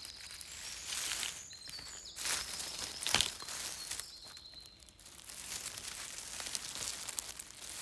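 A hand rustles through leaves and grass on the forest floor.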